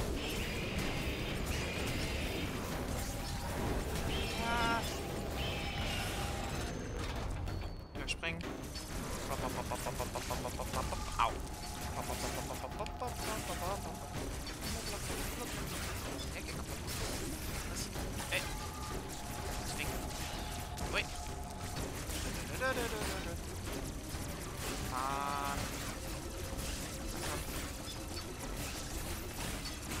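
A monster roars and screeches.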